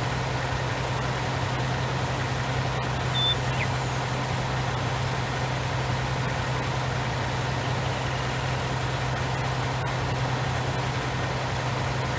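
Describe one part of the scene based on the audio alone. A harvester engine hums steadily.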